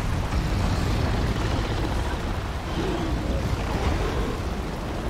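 Flames roar loudly.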